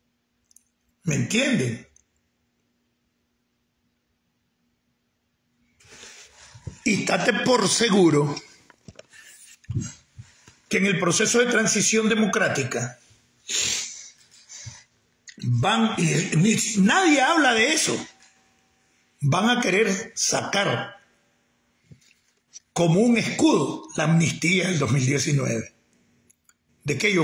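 An older man speaks calmly and close to a microphone, in short bursts with pauses.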